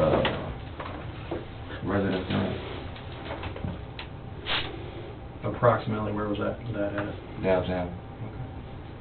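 A man speaks calmly in a small room, heard through a ceiling microphone.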